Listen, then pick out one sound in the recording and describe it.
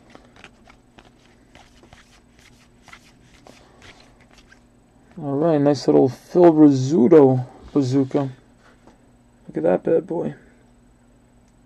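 Stiff cards rustle and flick as they are shuffled by hand.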